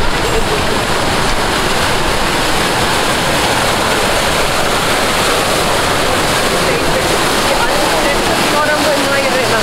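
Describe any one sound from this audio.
Water splashes steadily from a fountain.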